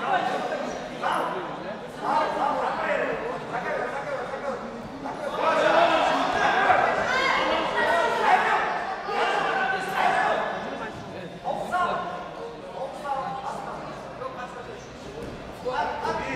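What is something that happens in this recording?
A crowd of young men shout and cheer in an echoing hall.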